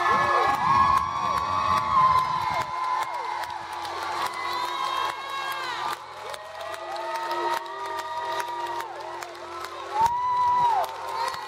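A young woman sings into a microphone through loudspeakers, in a large echoing hall.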